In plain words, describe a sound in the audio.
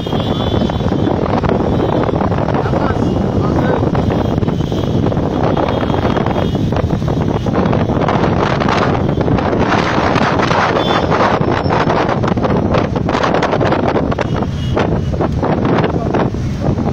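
A group of motorcycle engines rumble loudly as they ride slowly in a pack.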